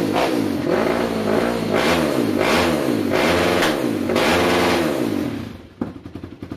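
A quad bike engine revs up and down in repeated bursts.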